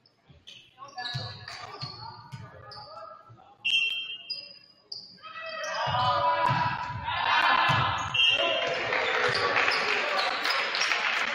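Young men shout to each other during play, echoing in a large hall.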